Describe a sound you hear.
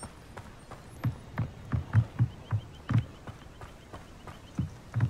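Footsteps run quickly over wooden boards.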